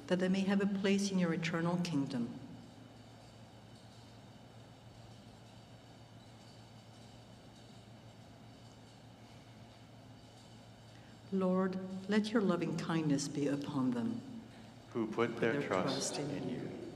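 A man chants into a microphone in a large echoing hall.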